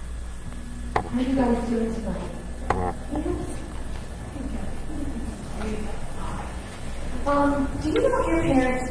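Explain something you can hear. Young children talk and call out nearby in a room with some echo.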